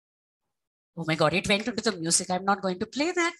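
A woman speaks calmly through an online call.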